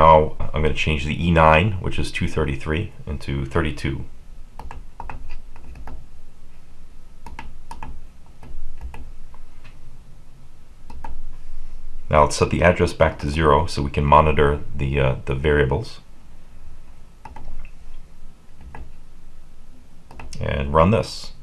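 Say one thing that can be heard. Small buttons click softly as they are pressed.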